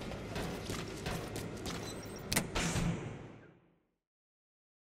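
Heavy footsteps thud on a hard metal floor.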